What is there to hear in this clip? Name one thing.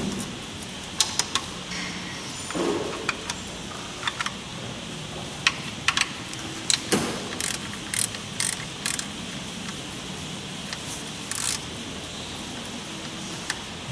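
Metal tools clink and clatter against engine parts.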